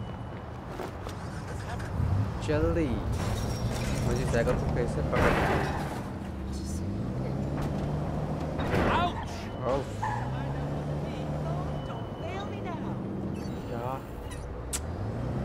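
A car engine revs and roars as the car speeds off and turns.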